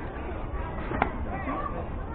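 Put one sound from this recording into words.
A ball smacks into a catcher's mitt.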